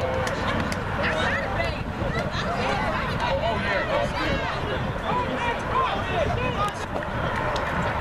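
Young players shout and cheer outdoors.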